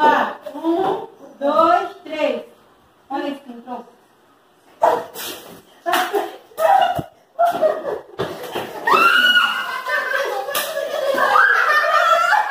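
Young women talk and laugh close by, one crying out loudly.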